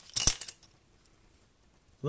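A plastic capsule clicks open.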